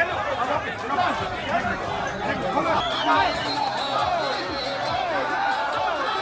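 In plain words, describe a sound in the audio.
A crowd shouts and chants excitedly nearby.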